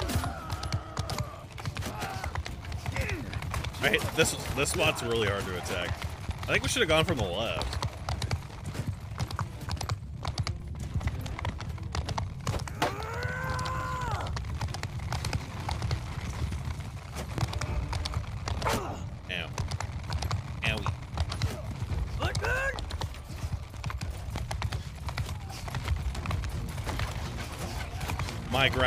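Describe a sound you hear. Horses gallop over snow.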